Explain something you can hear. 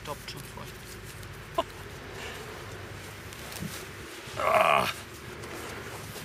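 Shoelaces rustle as they are pulled loose.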